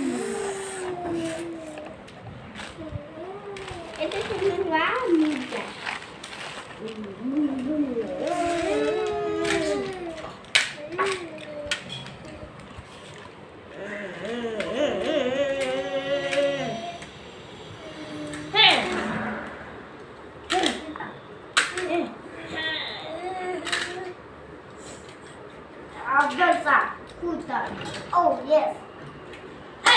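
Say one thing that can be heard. Plastic toys clatter and knock together.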